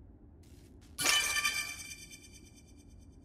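Metal blades spring out with a sharp ringing clang.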